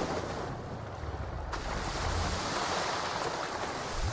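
Water splashes as a swimmer plunges in.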